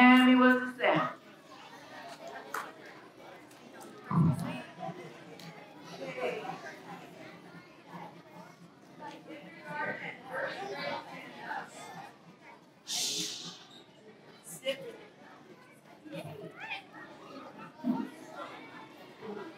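Children murmur and shift about in a large echoing hall.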